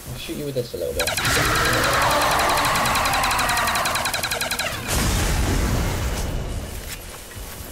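An electric weapon crackles and buzzes loudly.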